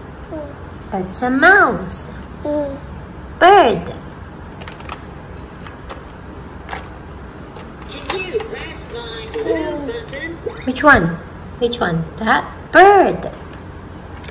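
An electronic toy plays bright, warbling electronic sounds.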